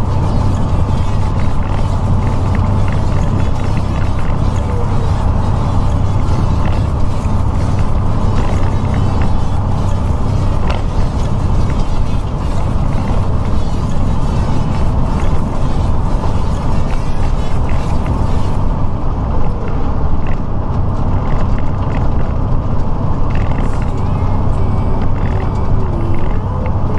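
Tyres roar on the road surface.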